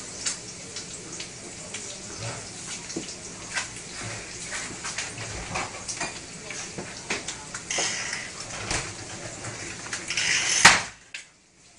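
Dishes and utensils clink and clatter on a counter.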